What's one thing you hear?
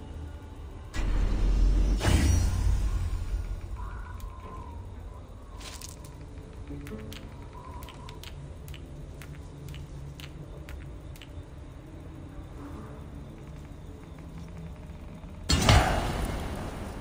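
A deep whoosh swells and fades as a menu opens.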